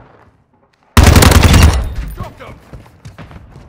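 A rifle fires a loud burst close by.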